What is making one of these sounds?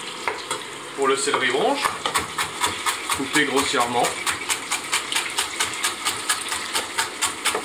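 A knife chops quickly and rhythmically on a wooden board.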